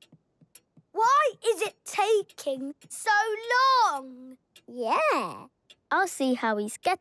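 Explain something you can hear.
A young child-like voice speaks with excitement, close by.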